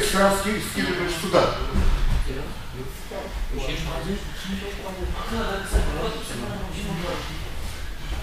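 Bodies thump and shuffle on a padded mat.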